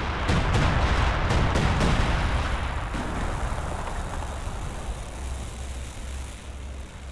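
Explosions rumble heavily.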